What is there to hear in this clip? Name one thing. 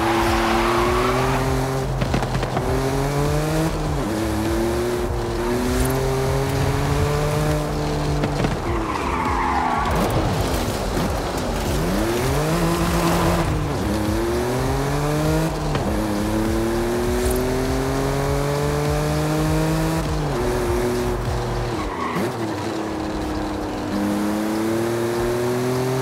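A car engine revs up and down through the gears.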